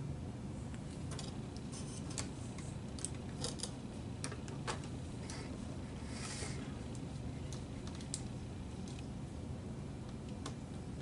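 Plastic film crinkles and rustles as it is handled.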